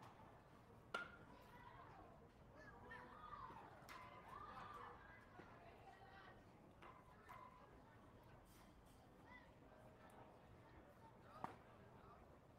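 A ball smacks sharply into a catcher's mitt.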